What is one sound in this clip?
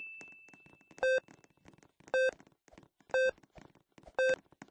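Short electronic beeps count down, once each second.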